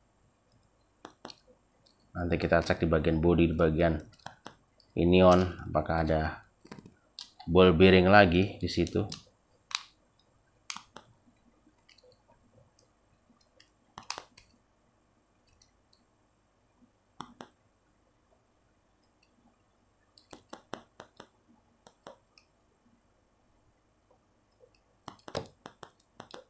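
A small screwdriver ticks and clicks against metal parts.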